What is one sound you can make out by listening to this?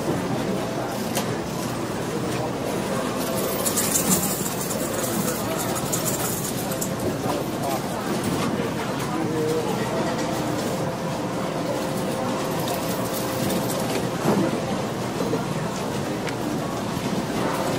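Many people chatter in a large, busy room.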